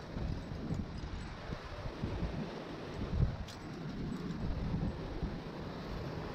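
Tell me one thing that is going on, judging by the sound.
Wind buffets in gusts outdoors.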